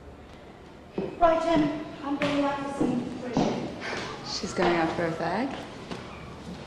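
A young woman speaks with feeling in a room.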